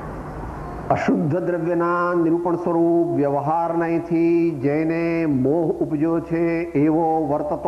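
An elderly man chants in a steady, sung voice through a loudspeaker.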